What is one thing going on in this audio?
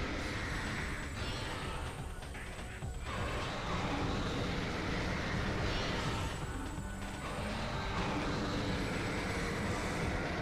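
A video game weapon fires rapid energy shots.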